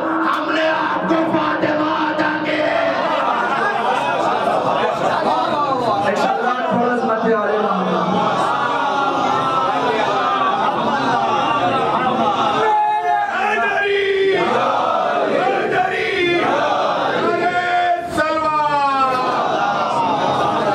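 A young man recites with fervour through a microphone and loudspeakers, in an echoing hall.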